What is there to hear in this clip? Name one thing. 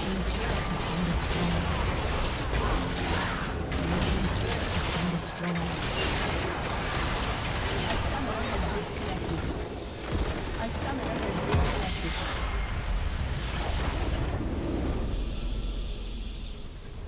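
Game spells and attacks crash and whoosh in a loud battle.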